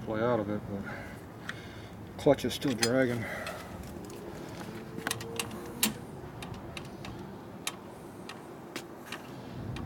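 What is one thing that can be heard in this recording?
Small metal parts clink and tap.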